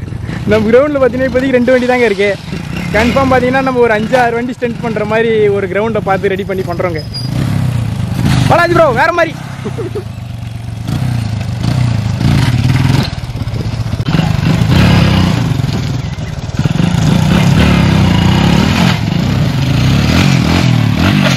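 A motorcycle engine rumbles and revs up close.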